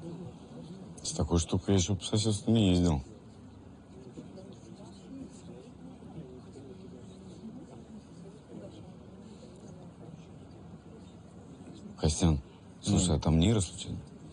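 A man speaks calmly nearby.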